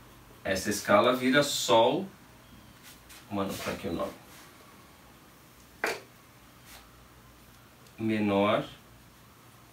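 A man speaks calmly and explains, close by.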